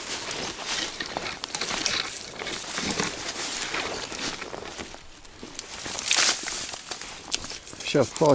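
Footsteps rustle and crunch through dry leaves and undergrowth.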